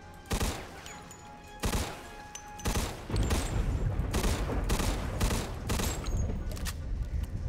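Gunshots ring out, then a machine gun fires in rapid bursts.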